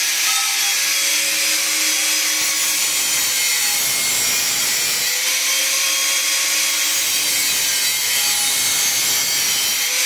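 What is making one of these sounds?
An angle grinder whines loudly as it cuts through a metal pipe.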